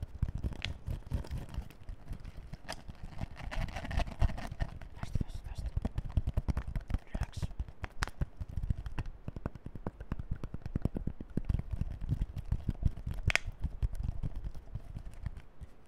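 A plastic bottle crinkles and crackles close to a microphone, over and over.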